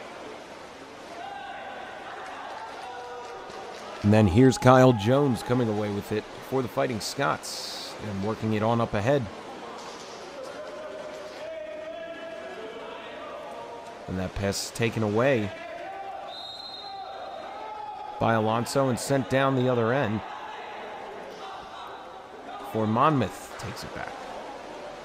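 Water splashes as swimmers thrash in a pool.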